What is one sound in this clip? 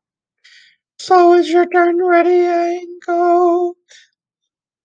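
A man sings short syllables on a steady note through a microphone.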